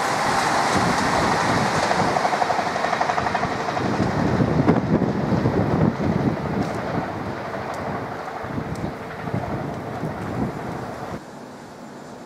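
Wheels rumble and clatter over the rails as a train departs.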